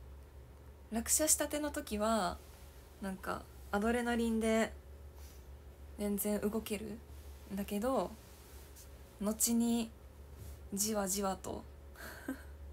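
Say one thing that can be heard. A young woman talks close to a microphone, calmly and in bursts.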